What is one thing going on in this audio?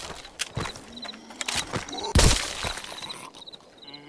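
Gunshots ring out close by.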